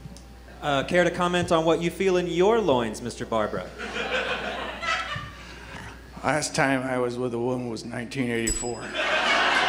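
Young actors speak loudly and expressively from a stage, heard from across a room.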